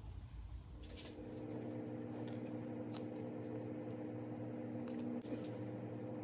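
Liquid squirts and drips from a plastic squeeze bottle into a small cup.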